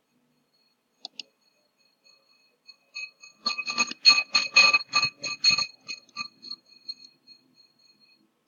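Short electronic game blips chirp in a quick burst.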